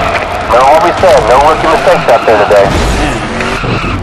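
A race car scrapes and crashes against a wall.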